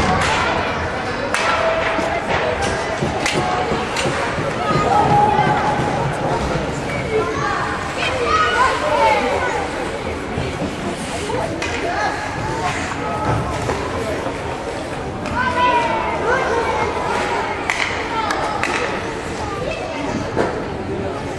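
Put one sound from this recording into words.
Children shout and call out in a large echoing rink.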